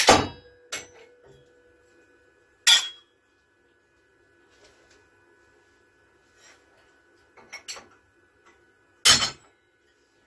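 Metal pieces clink and knock together.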